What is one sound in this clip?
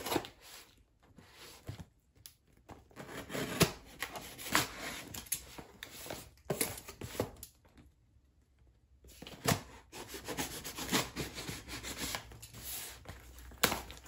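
Hands rub and press on a cardboard box.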